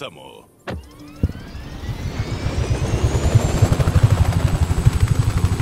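A helicopter's engine whines, rising in pitch.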